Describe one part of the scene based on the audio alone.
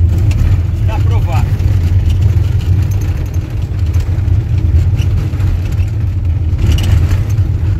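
A car engine rumbles steadily while driving on a dirt road.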